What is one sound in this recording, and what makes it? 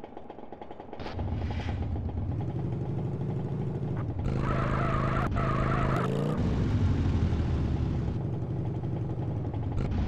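A motorcycle engine rumbles deeply and revs.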